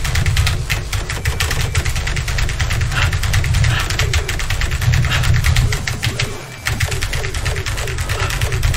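Fast electronic music plays with a heavy pounding beat.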